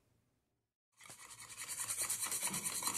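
A wire whisk beats eggs quickly in a bowl with a rapid clatter.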